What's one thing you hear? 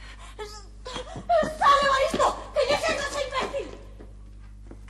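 A woman speaks with agitation.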